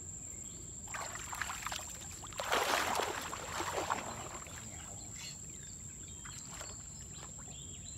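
A man wades and splashes through shallow water.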